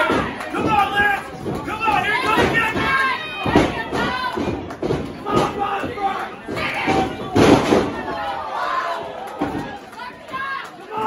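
A man shouts with animation nearby in an echoing hall.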